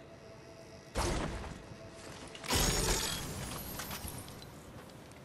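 A chest creaks open with a bright, sparkling burst.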